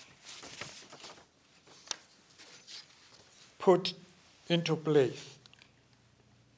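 An elderly man speaks calmly into a microphone, reading out.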